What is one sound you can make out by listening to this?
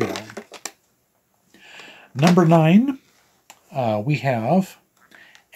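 A middle-aged man speaks with animation close to a microphone.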